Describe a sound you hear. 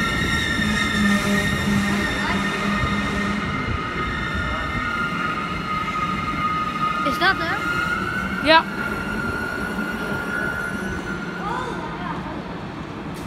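An electric train whines steadily as it rolls along.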